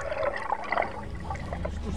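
Water laps against the side of a boat.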